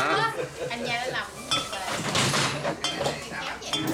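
A glass bottle clinks down on a table.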